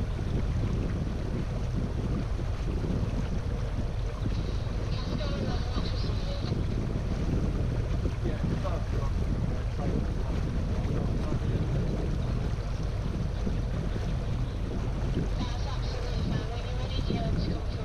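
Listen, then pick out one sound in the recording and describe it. A boat's engine hums steadily.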